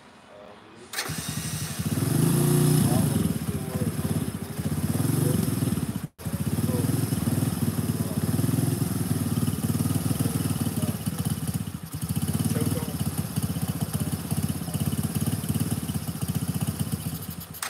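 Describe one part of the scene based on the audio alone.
A quad bike engine starts and runs with a loud, throbbing rumble close by.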